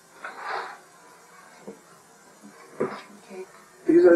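A sheet of paper rustles as it is lifted.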